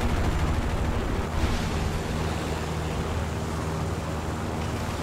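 Wind rushes past a diving plane.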